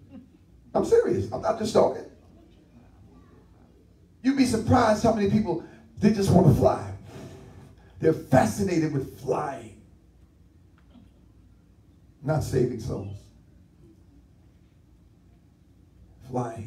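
A man preaches with animation into a headset microphone, in bursts with pauses, in a slightly echoing room.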